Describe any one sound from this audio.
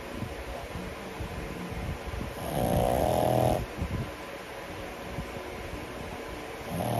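A small dog snores and snorts softly close by.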